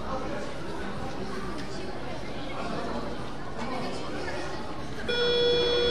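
Sneakers squeak on a gym floor.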